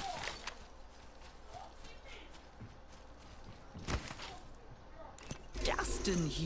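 Quick footsteps patter over grass.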